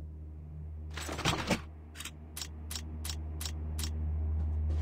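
Short clicks and clatter sound as weapon parts are picked up and fitted.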